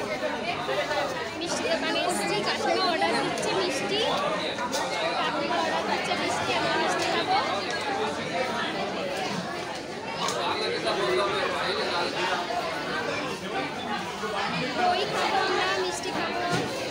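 A crowd of men and women chatter all around in a busy echoing hall.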